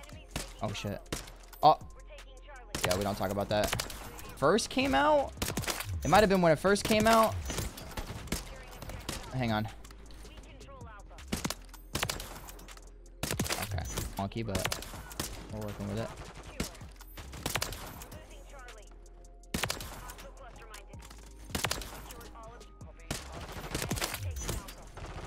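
Gunshots fire in sharp single cracks.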